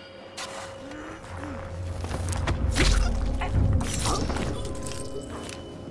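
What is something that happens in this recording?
A heavy thud and scuffle sound as a soldier is grabbed.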